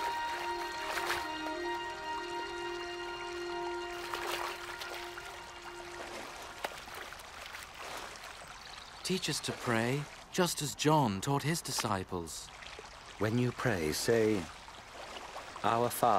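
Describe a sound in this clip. Water rushes and splashes over rocks.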